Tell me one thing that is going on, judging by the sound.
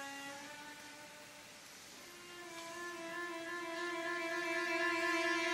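A woman sings in an operatic voice.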